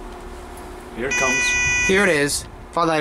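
An elevator chime sounds a short electronic tone.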